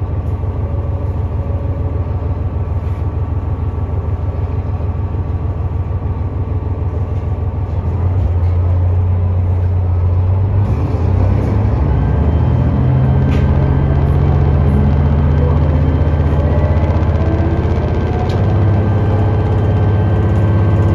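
A train hums steadily from inside a carriage as it sets off and slowly picks up speed.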